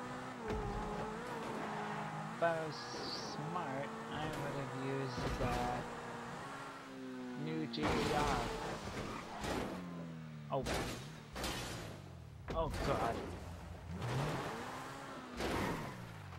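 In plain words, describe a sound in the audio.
A sports car engine revs high and whines through gear changes.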